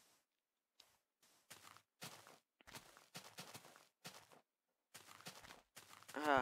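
Footsteps crunch softly on sand and grass.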